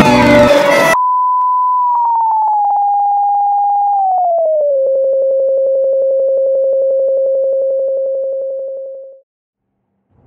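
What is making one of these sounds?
A steady electronic test tone beeps, then steps down lower in pitch and fades out.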